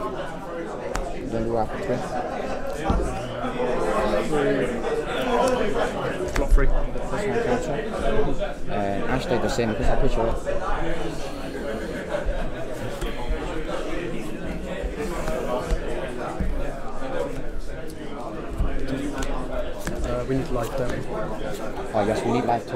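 Playing cards slap and slide softly on a mat.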